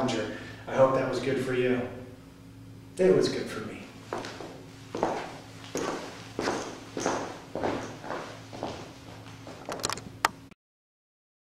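An adult man speaks calmly and clearly into a microphone, as if lecturing.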